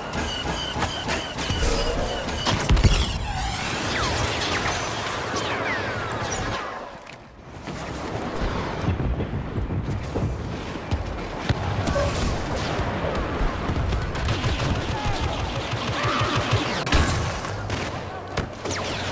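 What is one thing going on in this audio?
Blaster guns fire in quick bursts.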